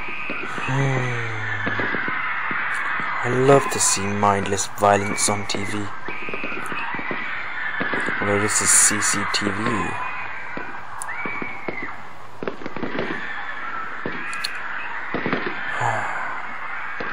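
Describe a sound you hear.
Video game sounds play through small speakers.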